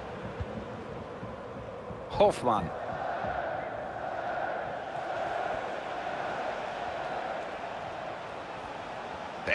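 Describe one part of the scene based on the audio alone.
A large stadium crowd murmurs and chants steadily all around.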